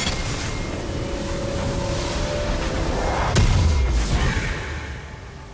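Magic blasts and hits crackle and whoosh in a video game fight.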